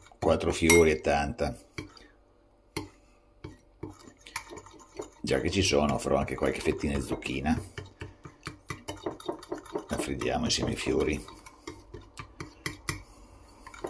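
A fork taps and scrapes against a ceramic bowl while whisking a thick batter.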